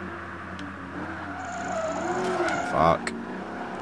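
Car tyres squeal through a sharp turn.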